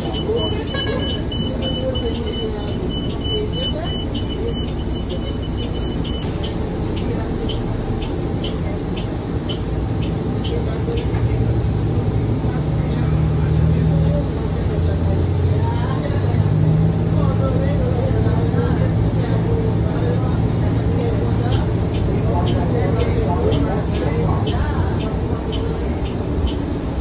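A bus engine rumbles steadily, growing louder as the bus pulls away.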